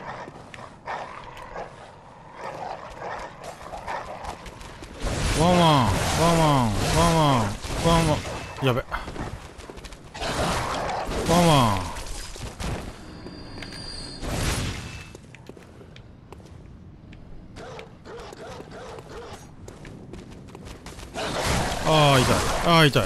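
Heavy weapon blows strike with sharp thuds.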